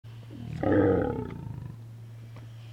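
A sea lion gives a loud, hoarse roar close by.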